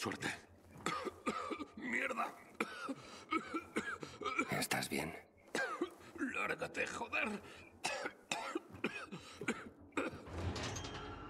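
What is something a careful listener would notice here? A man speaks in a strained, pained voice.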